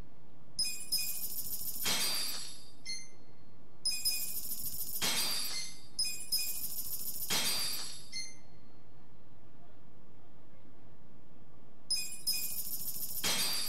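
Short electronic menu chimes blip as a selection moves through a list.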